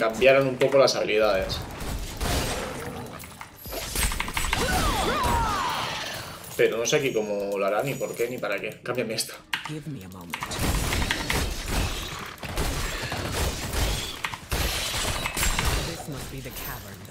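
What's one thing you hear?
Game battle effects clash and whoosh with bursts of noise.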